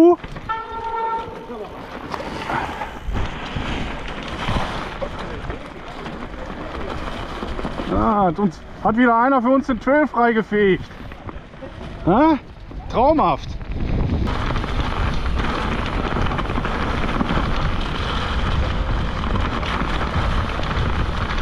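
Bicycle tyres roll and crunch over leaves and dirt.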